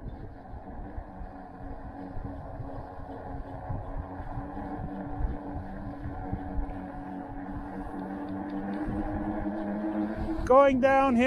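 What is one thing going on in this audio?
Tyres roll on smooth pavement.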